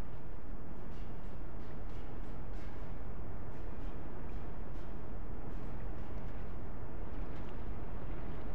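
Light footsteps patter on metal.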